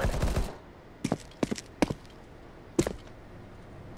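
Pistol shots crack sharply, one after another.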